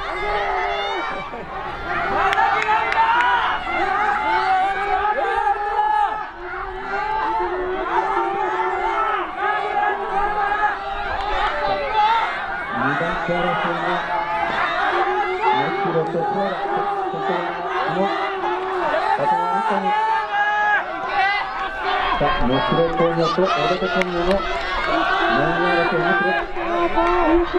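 A crowd of young spectators shouts and cheers loudly outdoors.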